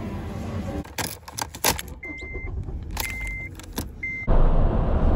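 Keys jingle and click in a car's ignition.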